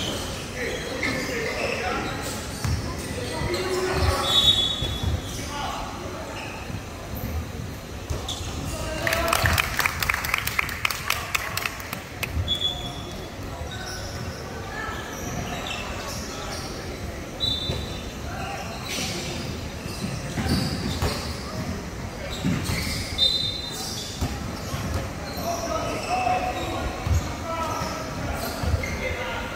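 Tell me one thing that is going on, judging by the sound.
Basketball shoes squeak sharply on a wooden court in a large echoing hall.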